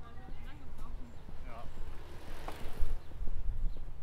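Bicycles roll past close by.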